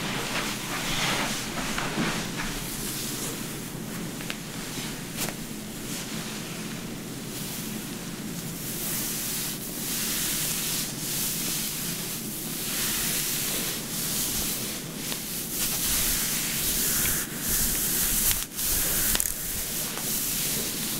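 Hands rub and brush softly over wet hair and fabric, close by.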